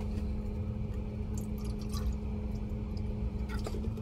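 Thick liquid pours quietly into a plastic cup.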